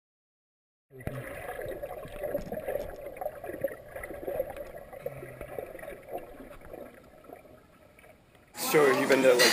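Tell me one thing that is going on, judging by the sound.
Water churns and bubbles, heard from underwater.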